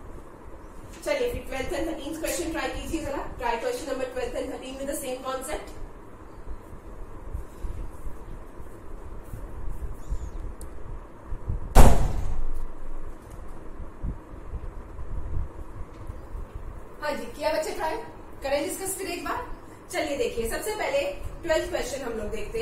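A young woman speaks clearly and calmly nearby.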